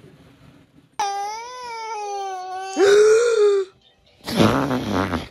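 A young child squeals and laughs loudly close by.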